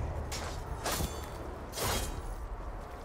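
Heavy blows land with loud, sharp thuds.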